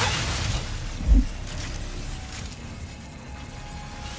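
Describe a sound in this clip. Crates smash apart with a sharp crack.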